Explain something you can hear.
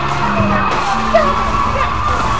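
A car crashes hard into a wall with a metallic bang.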